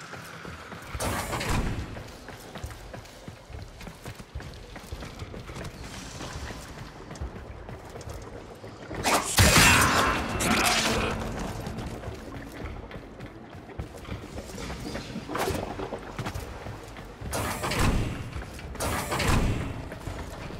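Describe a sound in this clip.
A blade whooshes through the air in sharp, loud bursts.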